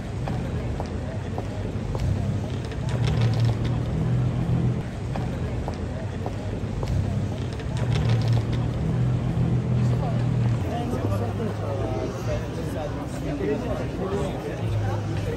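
Traffic hums steadily nearby.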